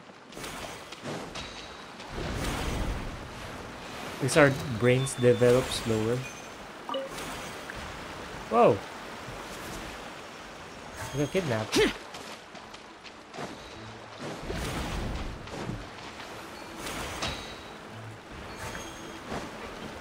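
Magical spell effects whoosh and chime in a video game.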